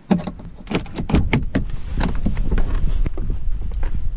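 A car door unlatches and swings open.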